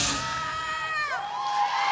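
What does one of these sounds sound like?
A young man shouts loudly in a large echoing hall.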